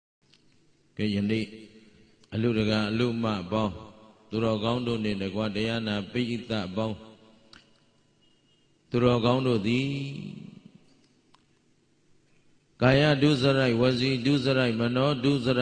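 An elderly man speaks calmly through a microphone, in a slow chanting manner.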